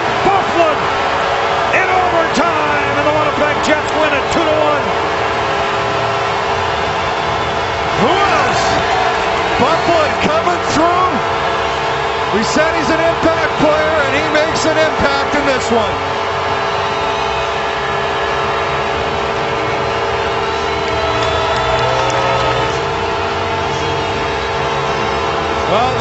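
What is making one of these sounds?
A large crowd cheers and roars loudly in a big echoing arena.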